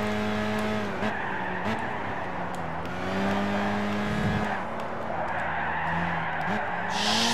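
A race car engine drops in pitch as the car slows for a corner.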